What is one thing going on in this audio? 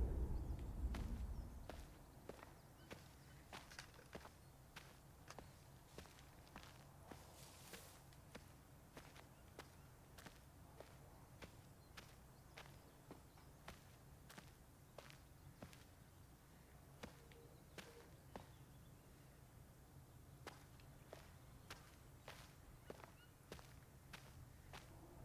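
Footsteps crunch on dry dirt at a steady walking pace.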